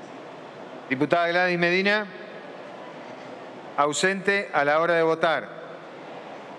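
An elderly man speaks formally into a microphone.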